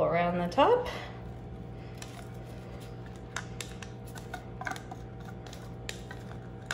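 A plastic glove crinkles softly as fingers crumble something into a bowl.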